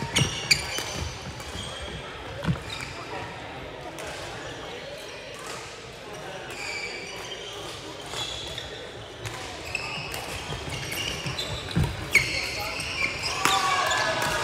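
Rackets smack shuttlecocks in a large echoing hall.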